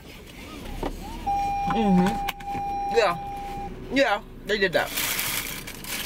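A seatbelt buckle clicks into place.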